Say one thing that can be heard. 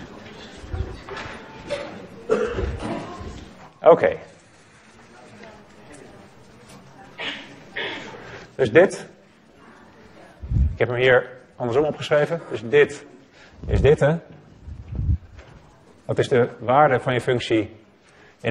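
A man lectures calmly in a slightly echoing room, heard through a microphone.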